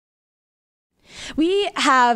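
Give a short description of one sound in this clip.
A young woman speaks into a handheld microphone close by, with animation.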